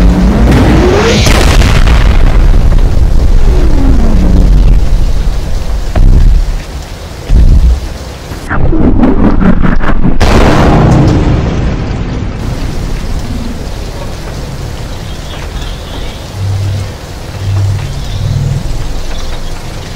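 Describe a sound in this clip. Fires crackle and roar.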